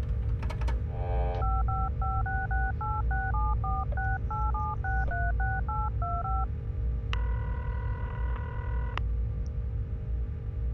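A spaceship's engines rumble low and steadily.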